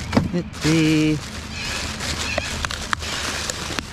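A plastic bag rustles as it is tied.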